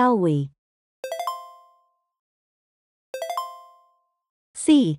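A bright electronic chime rings twice.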